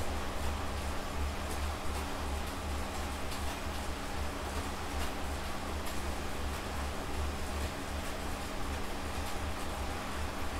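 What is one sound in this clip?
An indoor bike trainer hums and whirs steadily.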